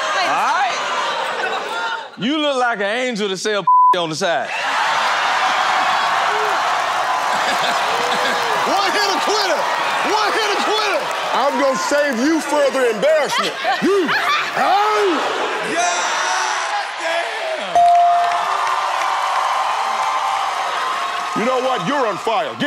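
A studio audience cheers and shouts loudly.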